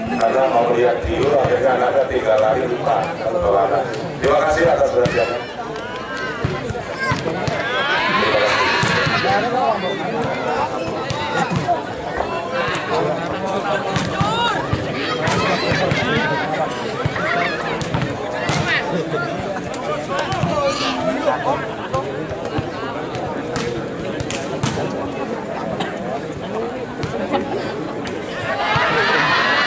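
A large crowd cheers and chatters loudly in an echoing hall.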